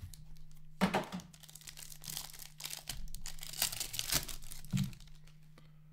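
Plastic wrapping crinkles and rustles as a pack is torn open.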